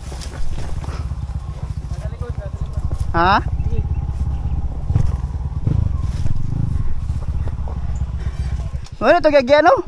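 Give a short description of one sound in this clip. A dirt bike engine rumbles steadily while riding over rough ground.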